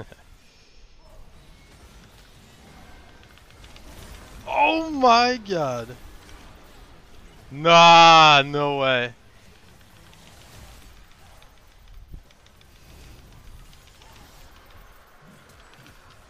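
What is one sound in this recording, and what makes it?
Fantasy game spells whoosh and clash in battle.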